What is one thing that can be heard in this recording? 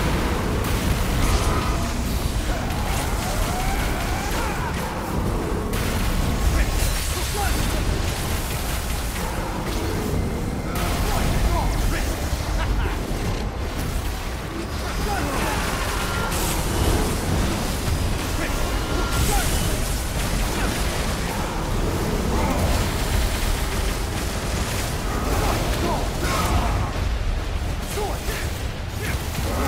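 Sword blades slash and clang rapidly in a fight.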